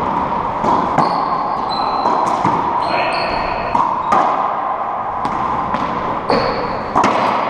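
Shoes squeak on a wooden floor.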